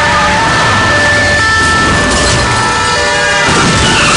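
Two cars collide with a metallic crunch.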